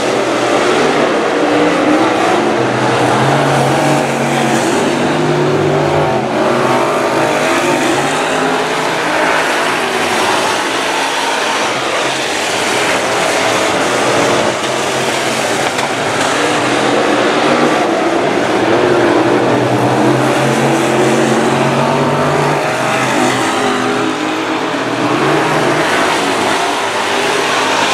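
Race car engines rise and fall in pitch as the cars pass and slow for the turns.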